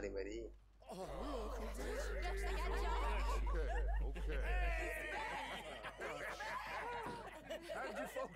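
A young woman shouts excitedly.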